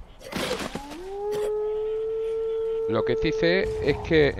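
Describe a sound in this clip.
A wolf howls close by.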